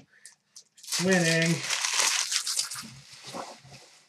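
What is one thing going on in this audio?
Plastic wrappers rustle and crinkle.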